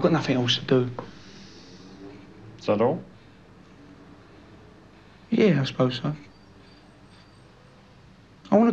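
A young man talks in short bursts.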